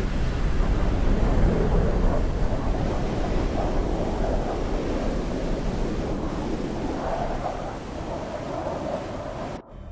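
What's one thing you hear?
A jet engine roars steadily with rushing wind.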